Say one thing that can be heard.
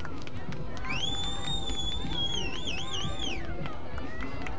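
A referee's whistle blows with a long, warbling blast.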